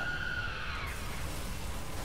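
Debris crashes and clatters down nearby.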